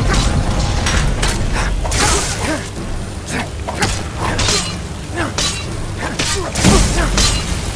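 Water rushes down a waterfall nearby.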